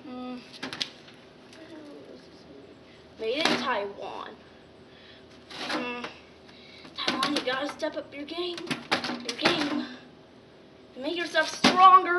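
A television's plastic case knocks and rattles as it is handled.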